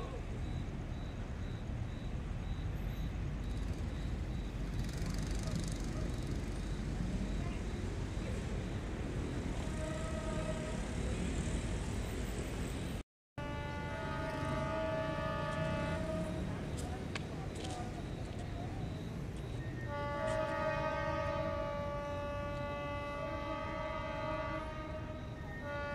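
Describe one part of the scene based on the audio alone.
A diesel train engine rumbles steadily.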